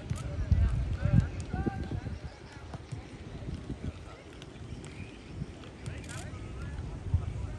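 Men call out to each other across an open pitch.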